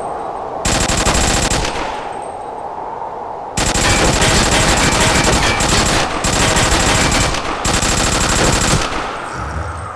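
Rapid gunfire rattles in long bursts.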